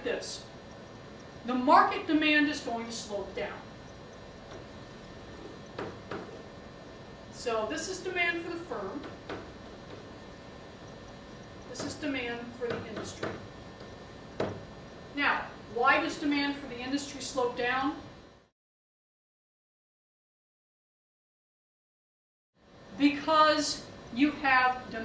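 A woman lectures calmly.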